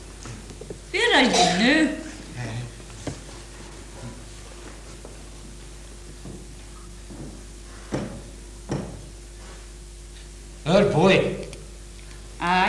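A woman speaks with feeling, heard from a distance in a hall.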